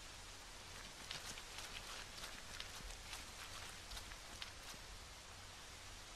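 A man crawls across rustling grass.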